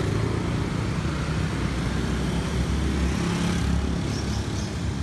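A motorbike engine rumbles close by as it passes.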